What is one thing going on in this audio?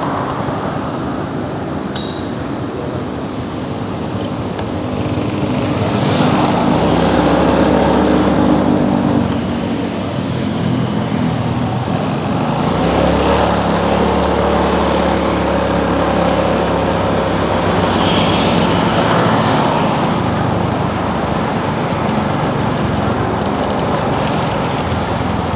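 A motorcycle engine hums steadily, rising and falling with speed.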